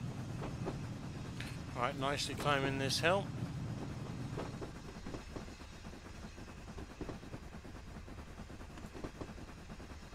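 A steam locomotive chugs steadily.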